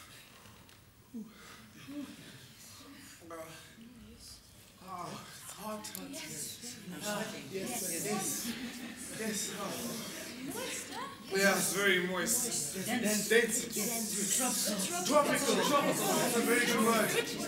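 Young men and women talk over one another with animation, in a large room that echoes.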